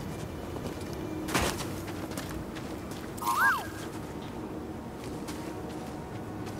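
Footsteps crunch on grass and rock.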